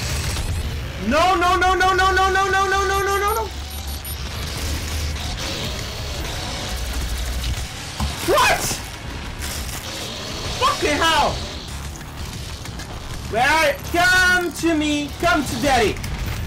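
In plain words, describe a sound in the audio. A young man exclaims loudly and talks with animation close to a microphone.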